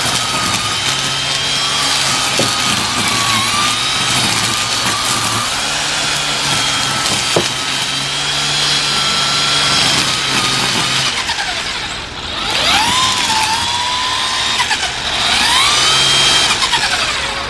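A string trimmer whines steadily as it cuts through grass.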